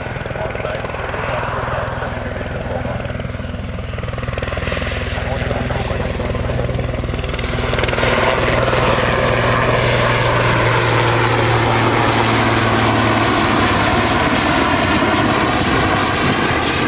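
A helicopter's rotor thuds steadily as the helicopter approaches and grows louder.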